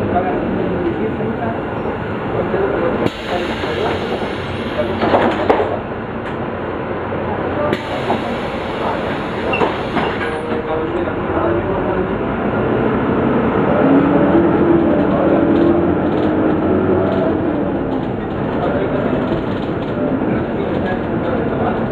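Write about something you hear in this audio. A bus engine rumbles steadily while the bus drives along.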